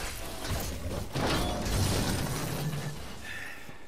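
Metal scrapes along the ground with a harsh grinding.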